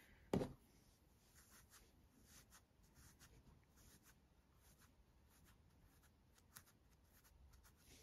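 Soft stuffing rustles faintly as it is pushed into a small knitted piece.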